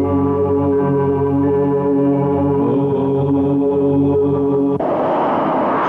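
An elderly man chants slowly in a deep voice.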